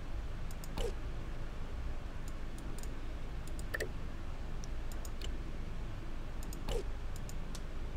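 Short electronic interface sounds chime and whoosh as menus open and close.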